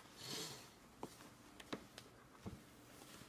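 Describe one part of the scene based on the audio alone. Small clicks and taps sound on a plastic tray.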